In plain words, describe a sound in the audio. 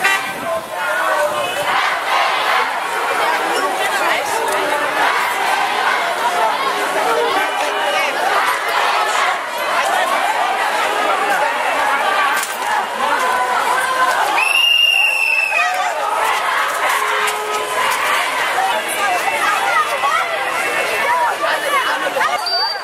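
A large crowd of men and youths shouts and chants loudly outdoors.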